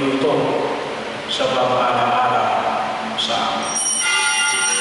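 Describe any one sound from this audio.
An elderly man speaks slowly into a microphone, heard through loudspeakers.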